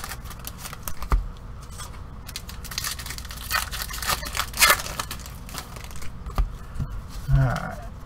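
Cardboard boxes rustle and knock as hands handle them.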